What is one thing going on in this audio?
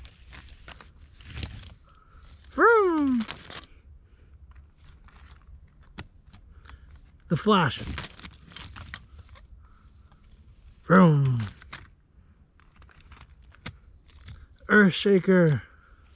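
Small toy wheels roll and crunch over dry dirt.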